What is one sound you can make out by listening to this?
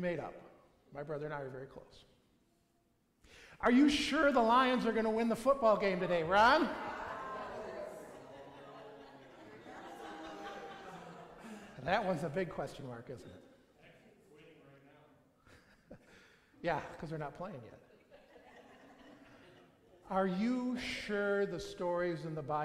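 An elderly man speaks calmly and with expression through a microphone in a large echoing hall.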